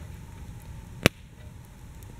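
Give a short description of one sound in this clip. A metal pan clanks sharply once.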